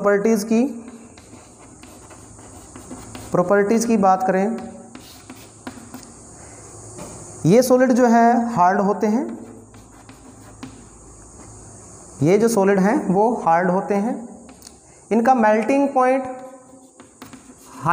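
Chalk taps and scratches on a board.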